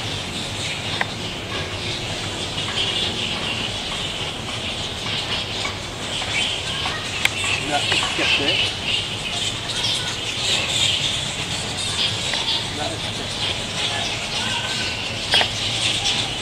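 A metal stake clinks against a metal hook a few times.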